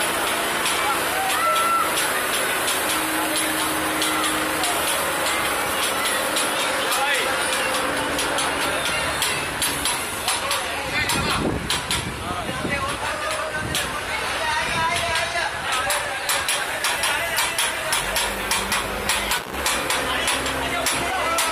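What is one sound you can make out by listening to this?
A crowd of men talk and shout in a street below.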